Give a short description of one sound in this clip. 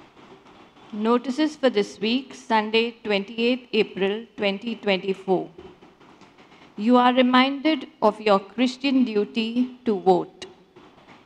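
A woman reads out through a microphone in a reverberant hall.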